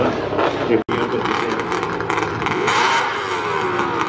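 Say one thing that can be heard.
A snowmobile engine idles and revs nearby.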